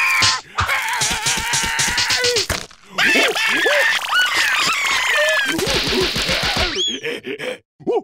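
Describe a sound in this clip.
A cartoon creature jabbers excitedly in a squeaky, high voice.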